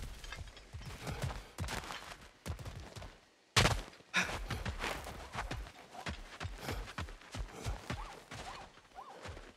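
Heavy footsteps crunch over rock and gravel.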